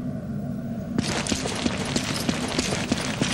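Footsteps tap on a stone floor in an echoing passage.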